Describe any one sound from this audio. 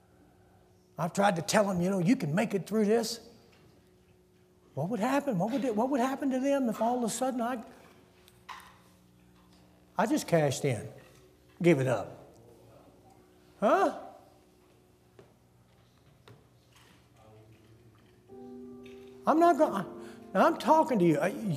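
An elderly man preaches with emphasis through a microphone in a large echoing hall, pausing between phrases.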